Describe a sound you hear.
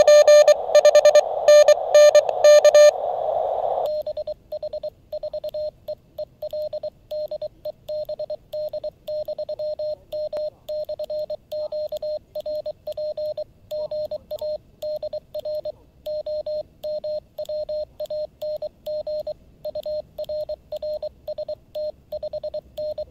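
A small radio beeps out Morse code in quick short and long tones.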